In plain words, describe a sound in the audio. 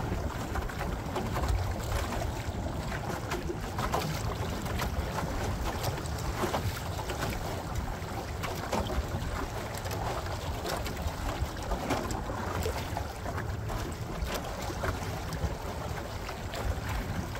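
Choppy water slaps against the hull of a small boat.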